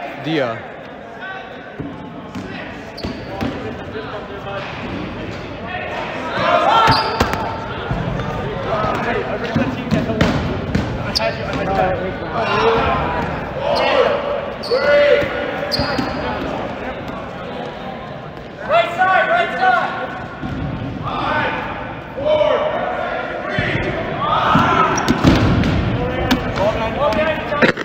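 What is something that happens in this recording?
Rubber balls thud and bounce on a hard floor in a large echoing hall.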